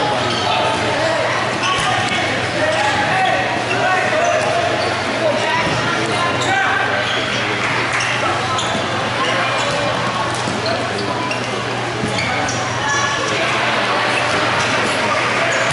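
Sneakers squeak sharply on a hard floor.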